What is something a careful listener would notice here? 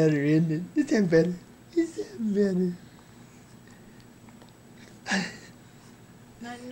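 A woman speaks to a baby in a soft, sing-song voice close by.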